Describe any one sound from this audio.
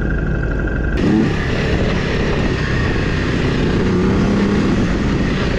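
A motorcycle engine runs and revs as the bike rides over dirt.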